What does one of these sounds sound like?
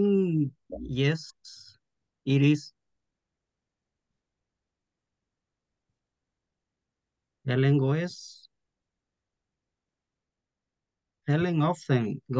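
A man speaks in short bursts over an online call, with pauses between.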